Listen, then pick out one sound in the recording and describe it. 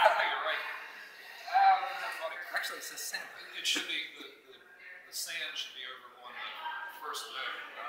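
A man talks calmly in a reverberant hall.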